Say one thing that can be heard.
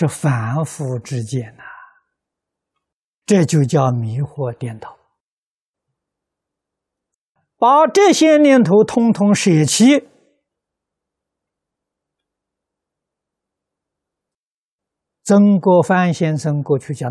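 An elderly man speaks calmly into a close microphone, pausing between phrases.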